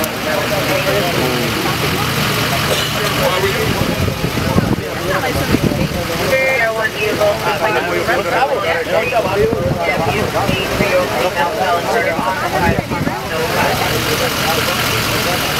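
A crowd of men talk and call out excitedly outdoors nearby.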